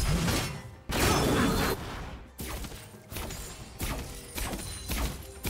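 Magic spell effects whoosh and crackle in quick bursts.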